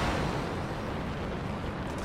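A jet thruster roars steadily.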